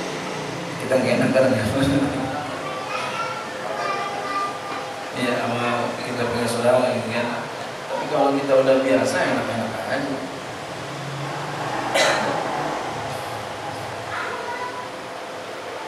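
A middle-aged man speaks with animation into a microphone in an echoing room.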